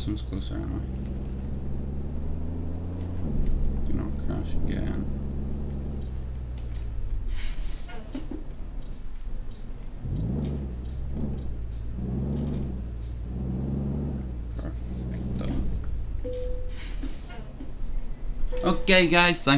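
A truck engine rumbles steadily and changes pitch as it shifts gears.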